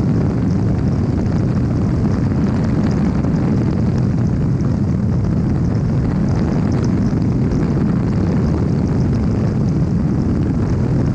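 A small aircraft engine drones steadily close by.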